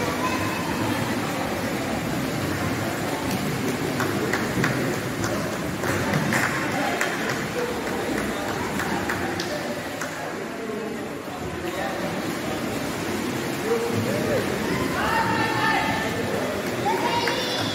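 A crowd of children and adults chatter and shout in the background.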